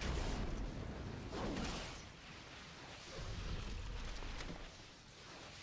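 Video game combat sounds clash and thud as a fighter strikes a creature.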